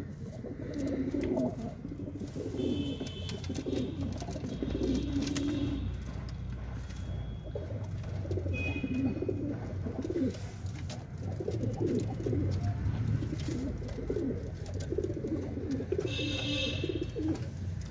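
Pigeons coo in low, rolling murmurs close by.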